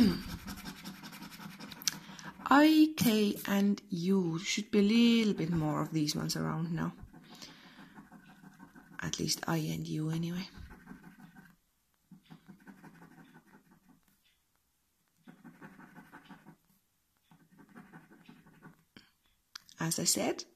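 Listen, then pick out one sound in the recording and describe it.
A coin scratches at a scratch card in short bursts.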